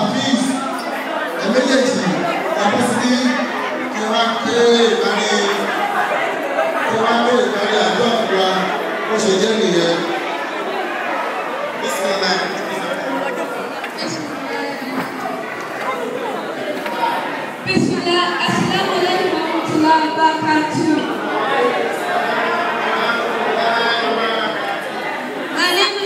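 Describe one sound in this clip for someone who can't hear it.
A crowd of men and women chatter loudly all around in a busy, echoing hall.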